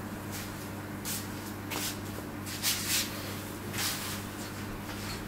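Clothing rustles as a man moves close by.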